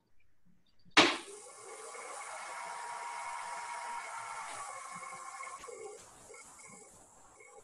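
A lathe motor whirs steadily.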